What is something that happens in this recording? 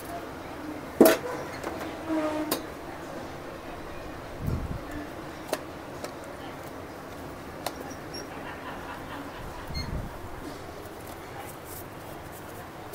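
Cardboard packaging rustles and clicks as a box is opened.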